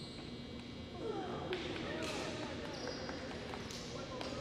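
Young women call out to each other in a large echoing hall.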